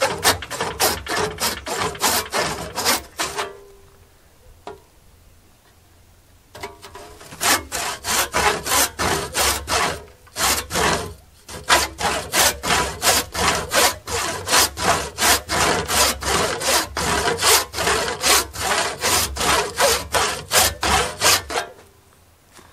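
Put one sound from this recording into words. A wooden mallet knocks rapidly and steadily against a metal saw blade.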